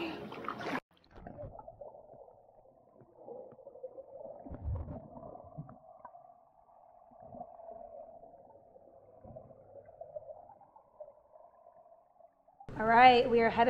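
Water rumbles and splashes, muffled underwater.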